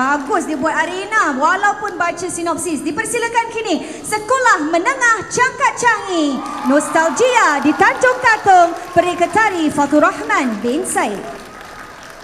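A woman sings through loudspeakers in a large echoing hall.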